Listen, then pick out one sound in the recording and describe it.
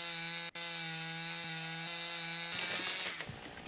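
A chainsaw engine idles with a steady hum.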